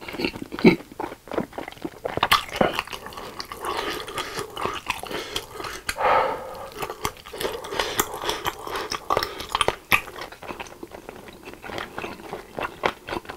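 A man chews and slurps food loudly and close up.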